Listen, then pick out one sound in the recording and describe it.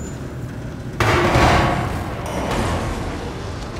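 A fire bursts with a loud whooshing roar.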